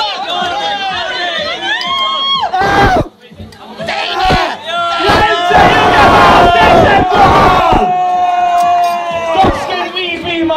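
A young man shouts and howls loudly close by.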